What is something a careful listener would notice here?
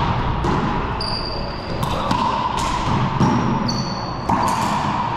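Court shoes squeak on a wooden floor.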